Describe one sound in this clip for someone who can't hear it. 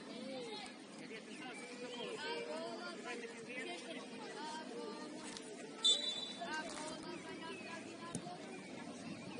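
Children shout and call out across an open outdoor pitch.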